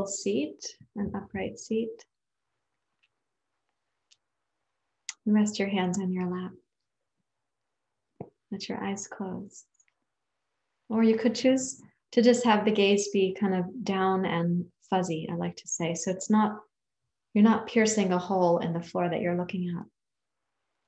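A woman speaks calmly and warmly in short phrases, close to the microphone.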